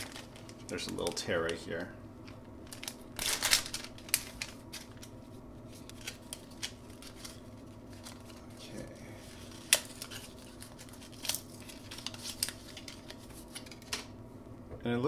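Plastic wrapping crinkles and tears open close by.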